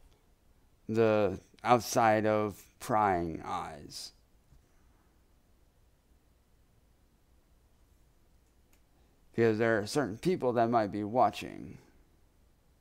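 A man talks calmly and close to a microphone, in two short bursts.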